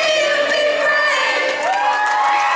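A young woman sings into a microphone.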